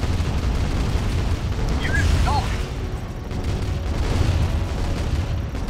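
Tank engines rumble low as vehicles drive.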